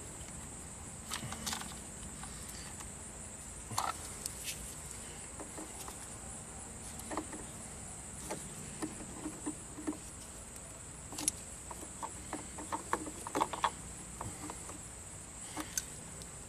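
Plastic parts click and snap.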